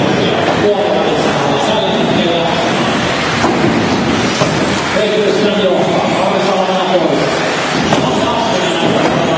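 Small electric motors of remote-control cars whine and buzz as the cars race around, echoing in a large hall.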